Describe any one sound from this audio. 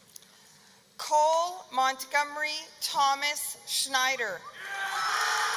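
A man announces a name through a loudspeaker in a large echoing hall.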